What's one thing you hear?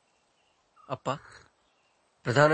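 A man slurps a hot drink.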